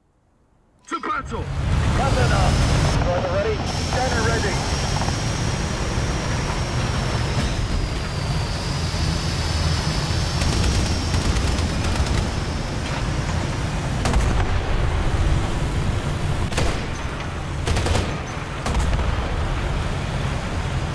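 A tank engine rumbles loudly and steadily.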